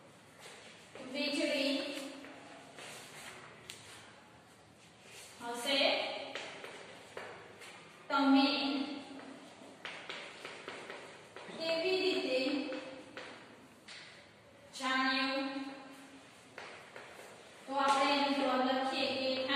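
A young woman speaks slowly and clearly nearby, in short phrases with pauses.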